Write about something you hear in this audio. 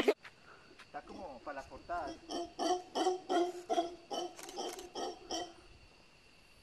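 A monkey gives a series of deep, rhythmic grunting calls.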